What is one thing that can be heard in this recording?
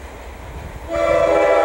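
A train horn blares loudly close by.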